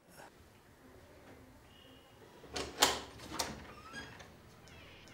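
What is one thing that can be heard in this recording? A window's wooden frame knocks and creaks as a man pushes the window open.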